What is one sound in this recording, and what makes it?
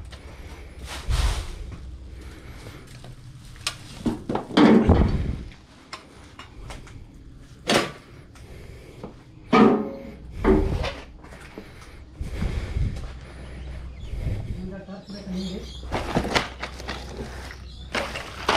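Objects knock and clatter as they are picked up and moved around.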